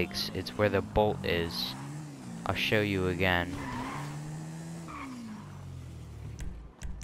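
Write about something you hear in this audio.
A motorcycle engine idles and revs.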